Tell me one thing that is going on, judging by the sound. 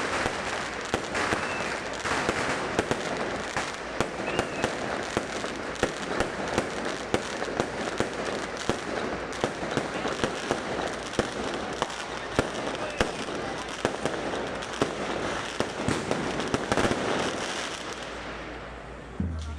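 Fireworks crackle and pop rapidly overhead.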